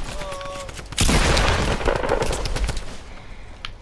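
A wooden wall snaps into place with a crash.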